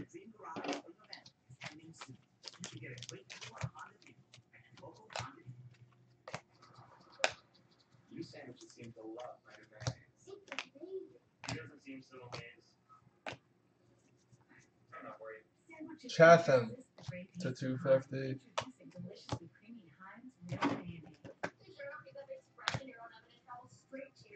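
Trading cards flick and rustle as hands shuffle through them.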